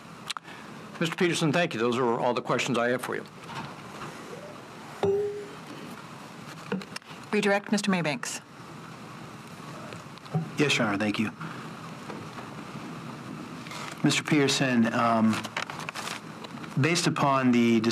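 An elderly man speaks calmly into a microphone, reading out in short bursts.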